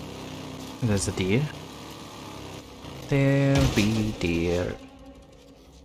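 A motorcycle engine roars and revs.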